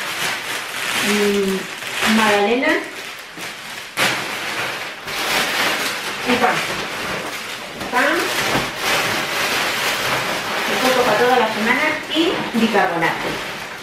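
A middle-aged woman talks casually nearby.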